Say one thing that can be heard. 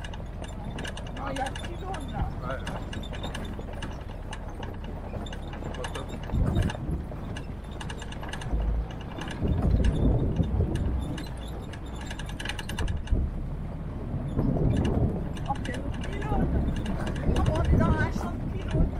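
Tyres crunch and rattle over a gravel track.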